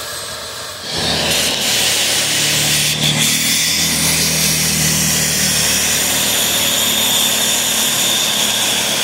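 A shop vacuum nozzle sucks along a rubber seal.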